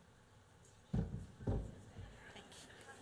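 A microphone thumps as it is handled.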